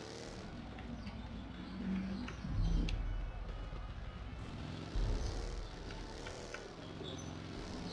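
Tyres rumble and bump over rough ground.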